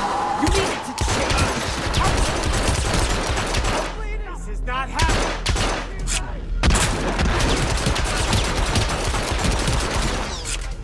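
Pistol shots crack repeatedly in quick bursts.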